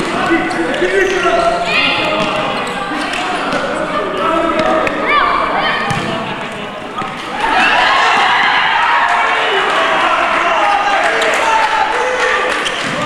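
Children shout and call out in an echoing indoor hall.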